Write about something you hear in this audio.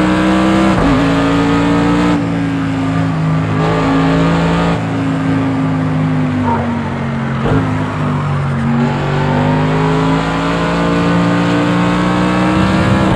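A race car engine roars loudly, its pitch rising and dropping with gear shifts.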